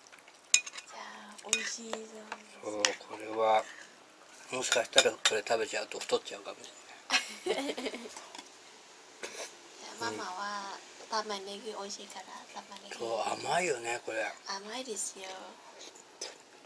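A young woman talks casually and laughs nearby.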